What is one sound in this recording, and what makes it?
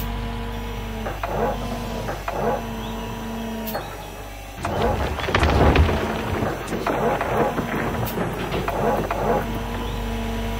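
Dirt and rocks scrape and rumble in an excavator bucket.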